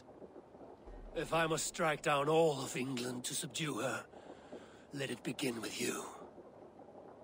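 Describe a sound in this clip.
A deep-voiced man answers in a low, threatening tone, close up.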